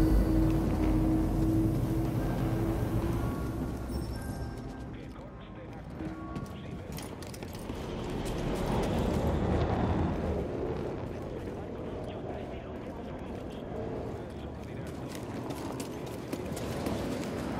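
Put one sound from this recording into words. Footsteps crunch over rock and grass.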